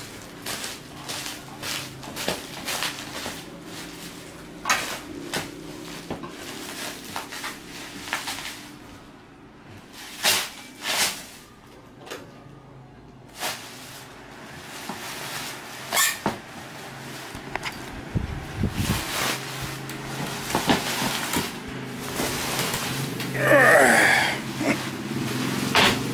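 Plastic wrapping crinkles and rustles under a hand.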